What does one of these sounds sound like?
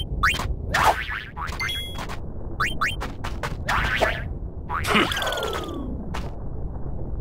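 Swords clash and swoosh in quick bursts.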